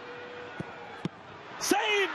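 A football is struck hard with a single thud.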